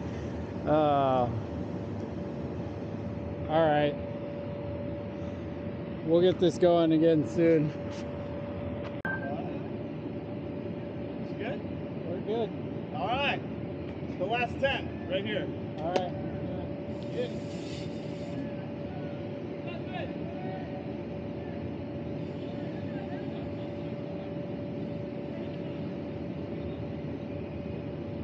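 A blower fan hums steadily.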